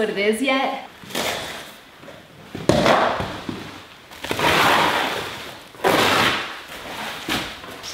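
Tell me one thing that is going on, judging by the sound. Plastic sheeting rustles and crinkles as it is handled.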